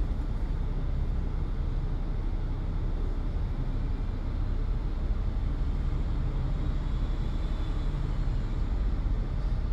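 Cars and minibuses drive past close by.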